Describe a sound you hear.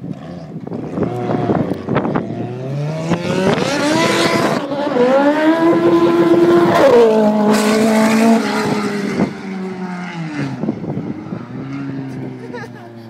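A car engine roars loudly as the car approaches at speed and passes close by, then fades into the distance.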